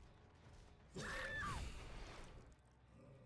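A heavy weapon swings through the air with a whoosh.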